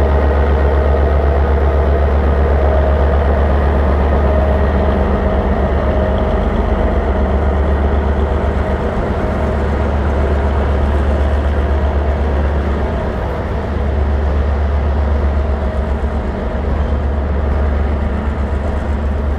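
A parked train's diesel engine idles with a steady low rumble.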